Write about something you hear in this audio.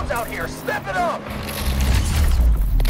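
A car crashes through a wooden fence with a loud crack.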